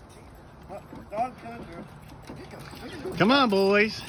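A dog runs across wooden boards.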